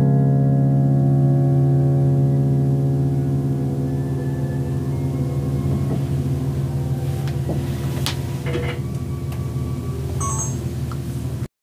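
A piano plays close by, its held notes ringing and slowly fading.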